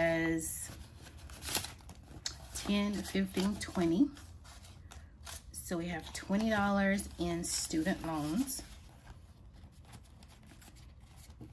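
Paper bills rustle and crinkle as they are handled.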